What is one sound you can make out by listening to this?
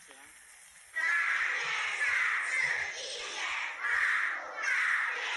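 A class of children recites loudly together in chorus.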